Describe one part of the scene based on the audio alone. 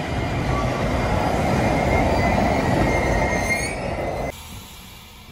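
A train rumbles loudly along the tracks.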